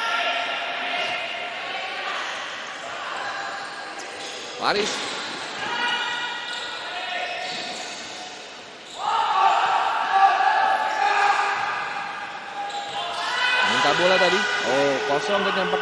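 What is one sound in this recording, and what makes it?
A ball thuds off a player's foot on a hard court.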